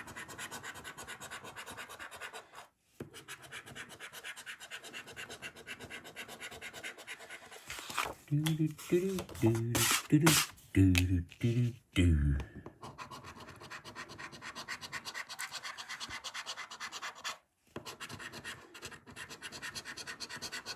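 A coin scratches rapidly at a scratch card.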